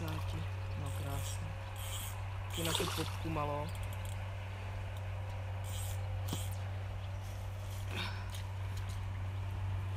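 A hooked fish splashes and thrashes at the water surface.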